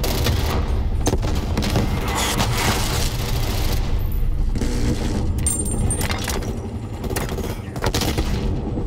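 A rifle fires in rapid bursts, with sharp loud cracks.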